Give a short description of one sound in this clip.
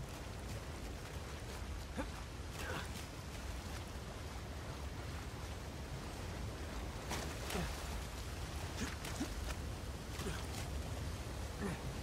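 Water splashes as someone wades through a shallow stream.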